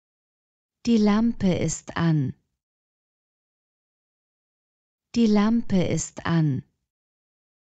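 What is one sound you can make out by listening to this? A young woman's voice says a short phrase clearly and calmly, then repeats it.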